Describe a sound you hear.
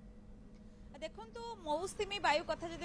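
A young woman speaks into a microphone.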